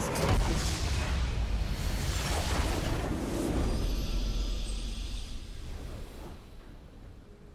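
A loud game victory fanfare swells with a rushing whoosh, then fades away.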